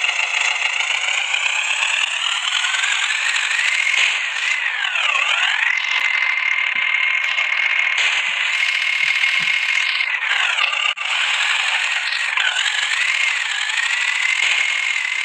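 A tractor engine drones steadily, its pitch dipping and rising now and then.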